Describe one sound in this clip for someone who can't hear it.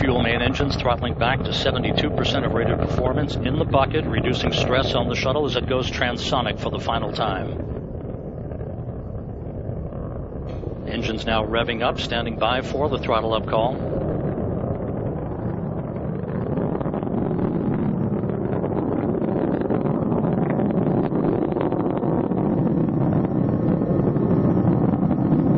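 Rocket engines roar with a deep, steady rumble.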